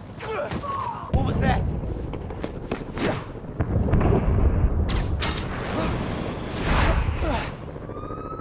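Air rushes past in loud whooshes.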